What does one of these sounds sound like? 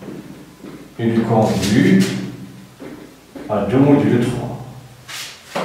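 A man speaks calmly, as if explaining.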